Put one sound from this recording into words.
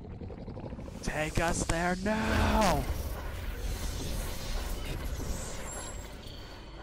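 A man screams in rage.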